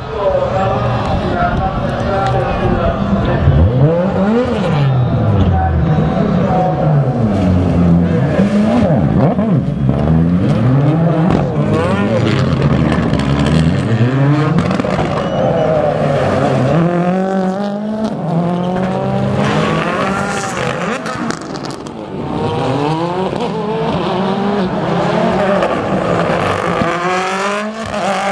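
Rally car engines rev hard and change gear as the cars race through corners on a circuit.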